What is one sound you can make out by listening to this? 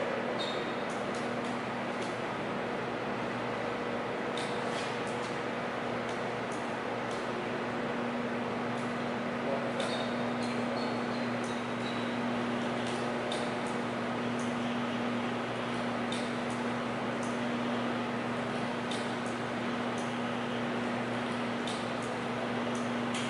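Small metal clicks and taps come from hands working on a fitting.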